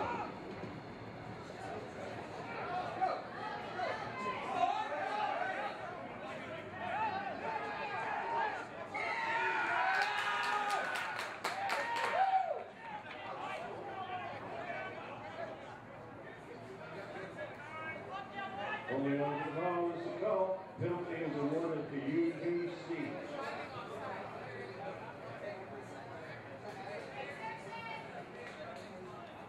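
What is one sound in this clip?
Men shout and call out across an outdoor field.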